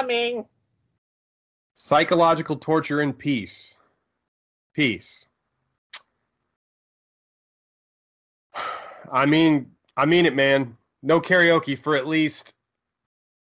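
A man speaks in short bursts over an online call, with animation.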